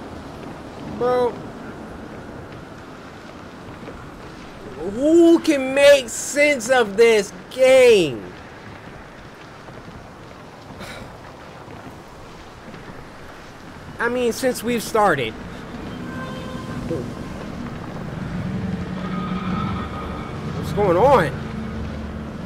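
A young man talks and exclaims loudly into a close microphone.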